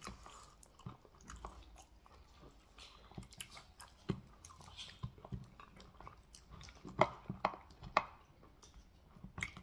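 Fingers squelch and tear through soft, saucy meat close up.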